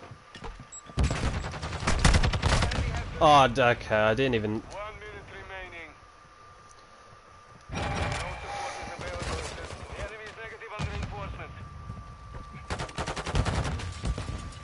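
Rapid automatic gunfire rattles in short bursts.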